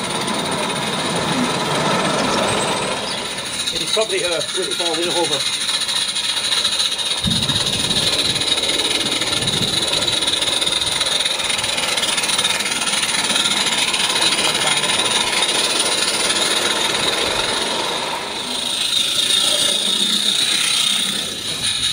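A model train rattles and clicks along its track outdoors.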